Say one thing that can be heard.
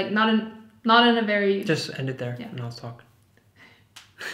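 A young woman speaks calmly and with animation close by.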